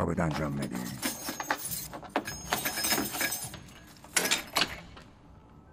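A key clicks and rattles in a lock.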